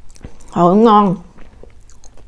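A woman makes a short, rising hum of delight close to a microphone.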